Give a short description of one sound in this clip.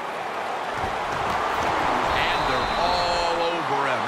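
Players' pads clash as a tackle lands.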